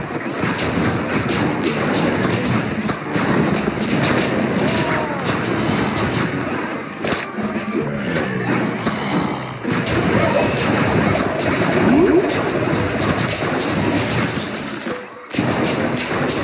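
Cartoon game effects pop, crackle and burst again and again.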